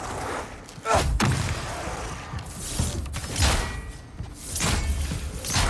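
A staff strikes with heavy thuds.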